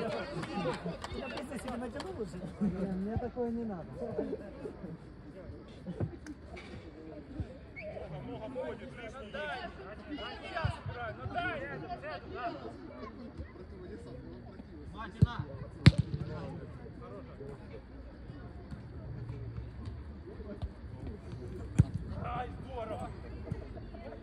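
Players shout and call out to each other across an outdoor pitch.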